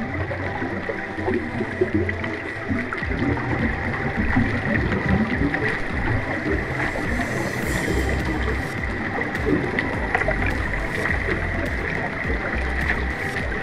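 Air bubbles from a diver gurgle and rise.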